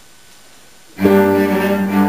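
Cellos start to play together, loud and close.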